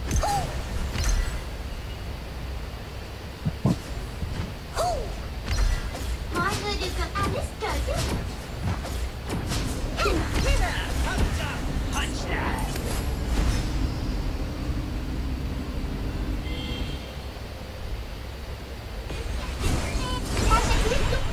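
A young woman talks casually into a nearby microphone.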